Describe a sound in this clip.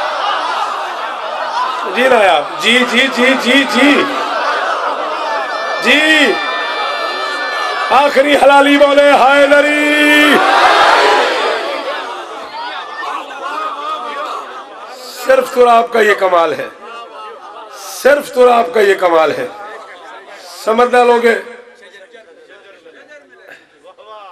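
A man speaks passionately into a microphone, his voice loud and ringing through loudspeakers.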